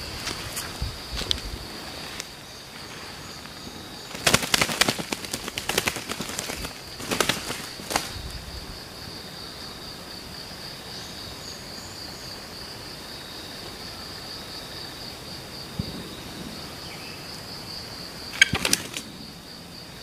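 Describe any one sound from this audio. Boots crunch on dry leaves and dirt with footsteps.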